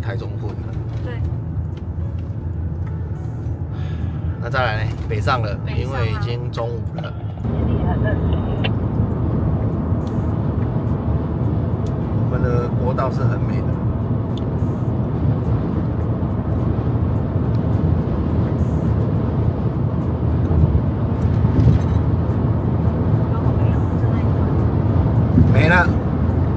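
A car's engine hums and tyres rumble steadily on the road from inside the car.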